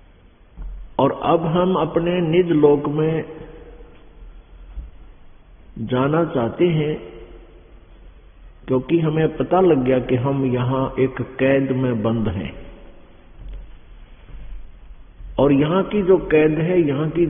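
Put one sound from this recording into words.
An elderly man speaks calmly and steadily through a microphone, in phrases with short pauses.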